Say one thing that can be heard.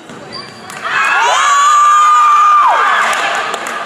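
A referee blows a long whistle blast.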